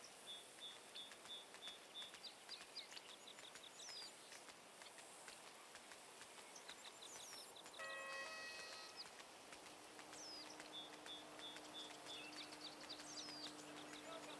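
Rain patters steadily on a wet road outdoors.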